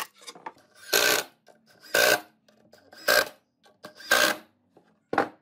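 A handheld power tool cuts along a wooden board in short bursts.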